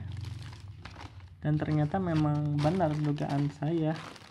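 Stiff paper rustles as hands handle it.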